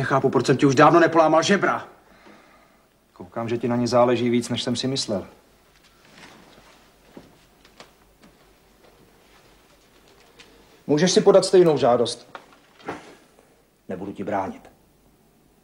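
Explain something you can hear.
A middle-aged man speaks firmly up close.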